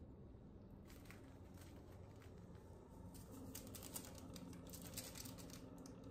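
Soft rustling and light tapping come from something handled close by.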